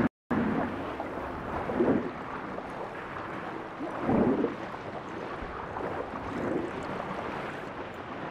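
A swimmer's strokes whoosh through the water in slow surges.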